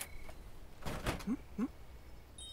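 A wooden door opens with a knock and creak.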